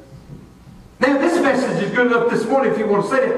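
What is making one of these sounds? An elderly man preaches loudly into a microphone in an echoing hall.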